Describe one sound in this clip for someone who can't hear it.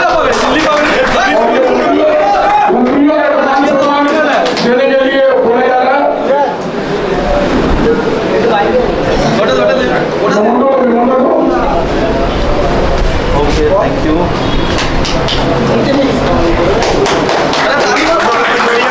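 Several men talk and murmur nearby in a busy room.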